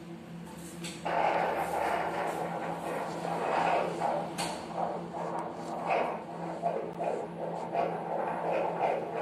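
A fetal heart monitor pulses with a rapid, whooshing heartbeat through a small loudspeaker.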